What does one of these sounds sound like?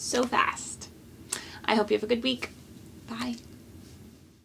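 A young woman speaks warmly and with animation close to a microphone.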